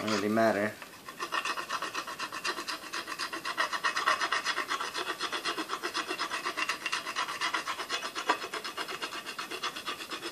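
A blade scrapes quickly back and forth along a wooden stick.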